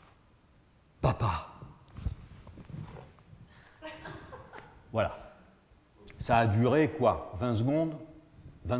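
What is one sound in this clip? A man speaks with animation in an echoing hall.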